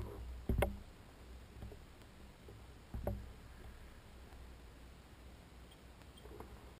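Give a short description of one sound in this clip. Water laps softly against a kayak hull.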